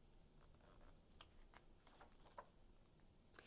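A page of a book rustles as it turns.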